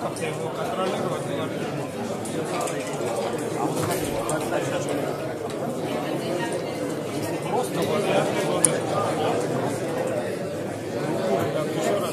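Plastic game pieces click and slide on a wooden board.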